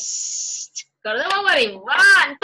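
A woman sings animatedly, heard through an online call.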